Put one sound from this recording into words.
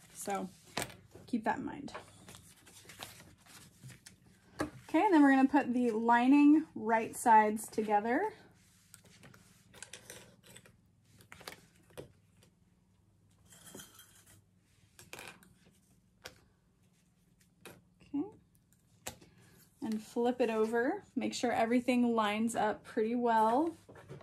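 Fabric rustles and slides as hands handle it.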